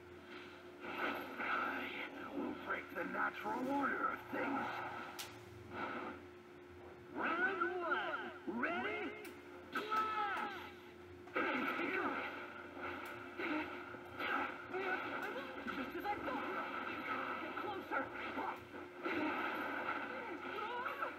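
Loud blasts and crashing effects play from a television speaker.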